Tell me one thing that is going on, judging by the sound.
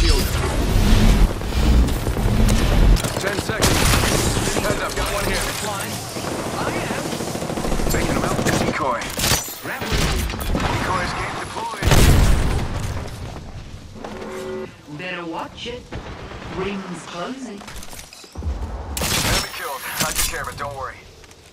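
Gunshots crack in loud bursts.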